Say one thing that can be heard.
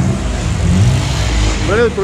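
A motorbike engine rumbles nearby.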